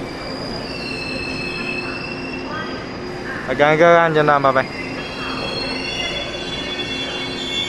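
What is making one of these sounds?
A diesel train engine idles steadily nearby.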